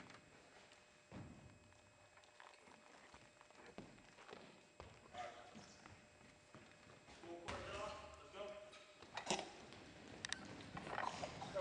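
Basketballs bounce on a wooden floor in a large echoing hall.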